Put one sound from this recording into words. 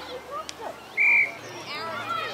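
A referee's whistle blows once, short and sharp.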